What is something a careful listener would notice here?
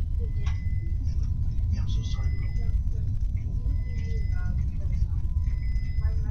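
Deep underwater ambience rumbles low and steadily.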